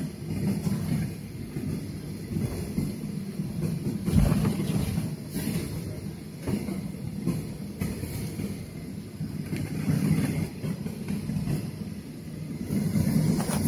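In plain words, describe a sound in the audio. A jet engine hums and rumbles steadily inside an airliner cabin as the plane taxis.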